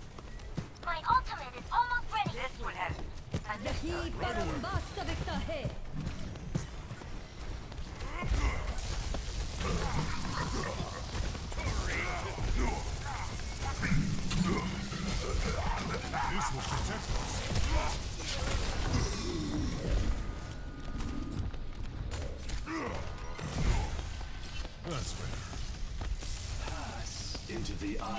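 An electric beam weapon crackles and buzzes in bursts.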